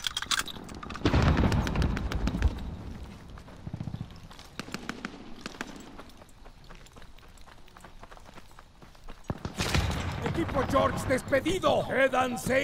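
A submachine gun fires in short, loud bursts.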